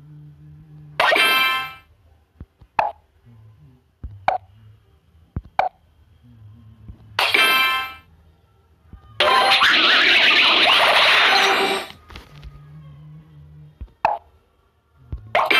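Blocks pop with short, bright chimes.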